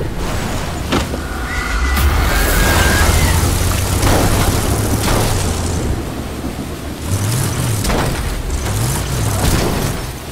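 A car engine rumbles low and steady as the car drives over rough ground.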